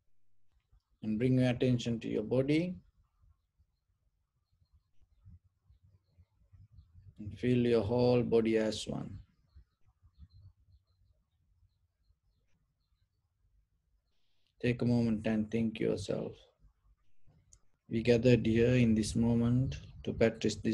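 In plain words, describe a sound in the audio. A man speaks calmly and slowly into a close microphone, in short phrases with long pauses.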